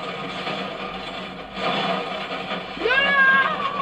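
An explosion roars loudly.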